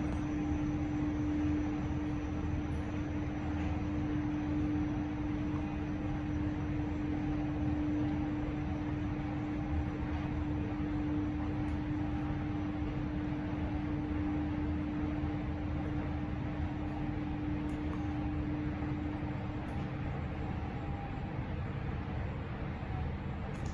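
An elevator hums and rumbles steadily as it descends.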